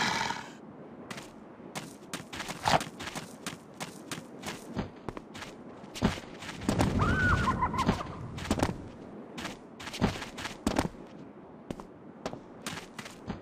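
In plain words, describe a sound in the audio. Footsteps run over sand and stone.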